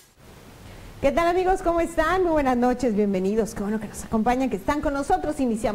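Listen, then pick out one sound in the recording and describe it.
A woman speaks clearly into a microphone, reading out calmly.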